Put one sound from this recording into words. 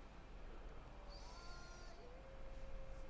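A soft electronic chime sounds.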